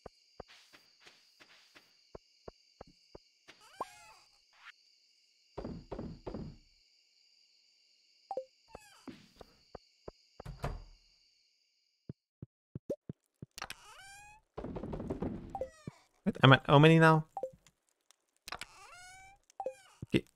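Short soft clicks and blips of a game menu sound now and then.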